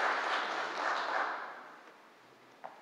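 An audience applauds and the applause fades away.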